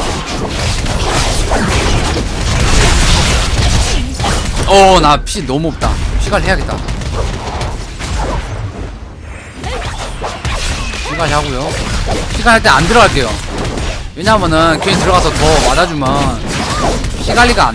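Game sword clashes and spell effects crackle and whoosh.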